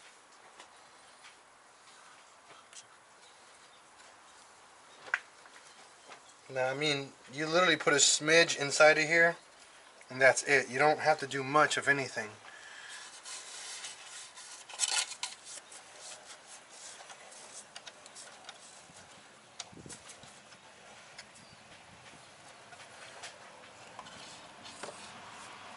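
Metal tools clink and tap against engine parts.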